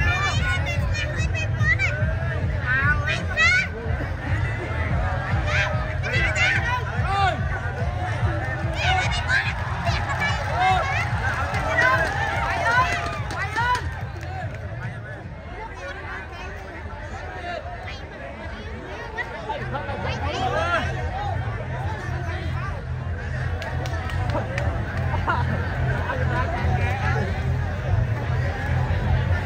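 A large crowd of men and women chatters and cheers loudly.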